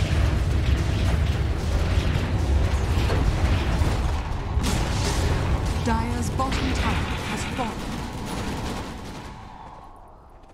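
Game spells crackle and burst in a busy fight.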